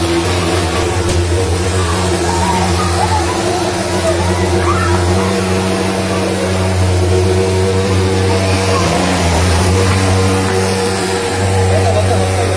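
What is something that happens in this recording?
Fogging machines drone loudly and steadily with a pulsing engine hum.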